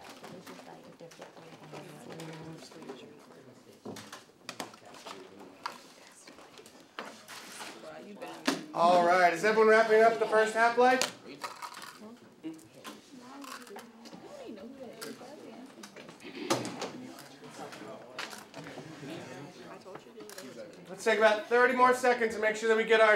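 Teenagers chat quietly in a room.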